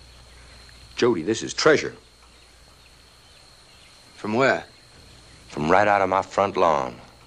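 A middle-aged man speaks with animation, close by.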